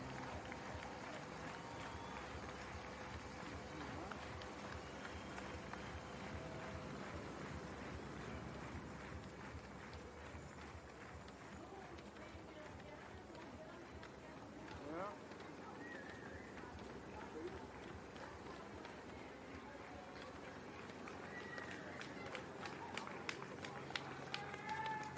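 Racewalkers' shoes patter quickly on the road.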